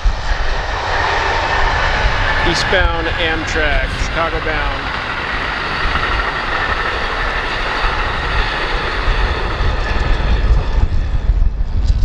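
A passenger train rolls past with a steady roar.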